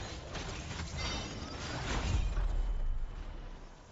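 A shimmering burst of energy whooshes loudly.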